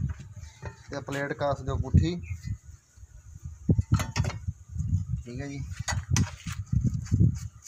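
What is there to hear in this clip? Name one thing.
Metal parts clink and rattle.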